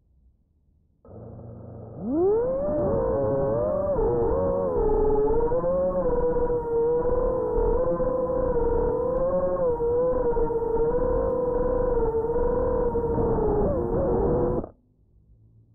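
A small electric motor whines, rising in pitch and then holding steady.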